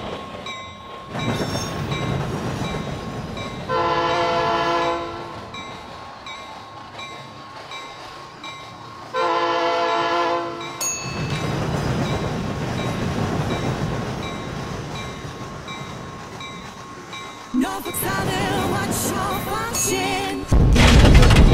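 A diesel locomotive rumbles along the rails.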